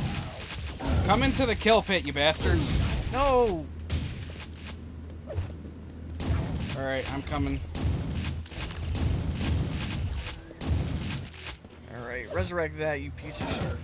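A young man talks with animation through a headset microphone.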